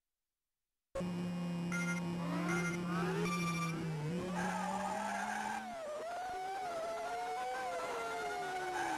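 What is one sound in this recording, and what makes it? A racing car engine whines and rises in pitch as it speeds up.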